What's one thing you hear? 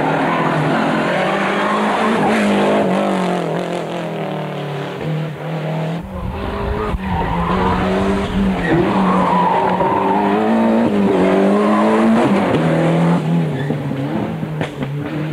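A rally car's engine revs up and down as it changes gear.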